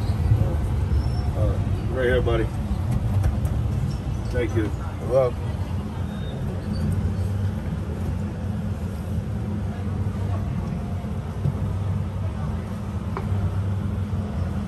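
A tram engine hums low and steady.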